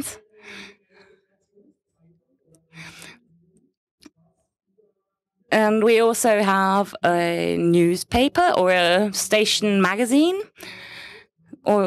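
A man talks steadily through a microphone.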